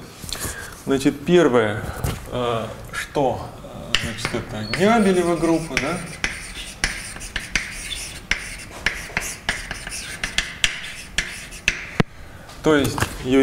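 A man speaks calmly nearby, with pauses.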